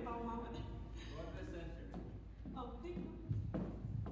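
A woman speaks with animation into a microphone through loudspeakers in an echoing hall.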